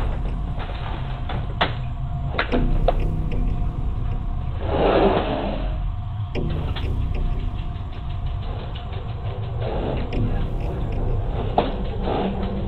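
Objects clatter and knock as a woman handles things on a counter.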